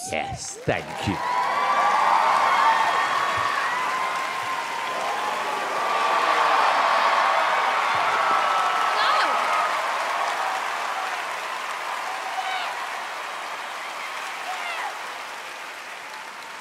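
A crowd cheers and claps loudly in a large hall.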